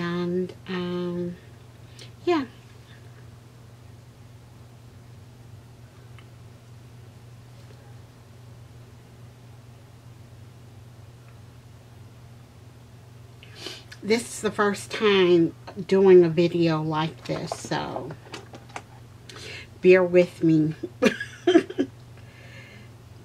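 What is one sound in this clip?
A woman talks close by, calmly and with animation.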